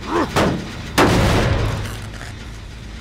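A heavy weapon strikes with a loud crashing blow.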